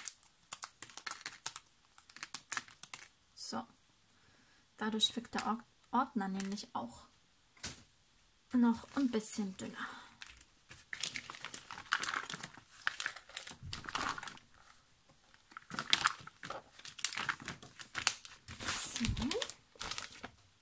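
Plastic sheets crinkle and rustle as they are handled.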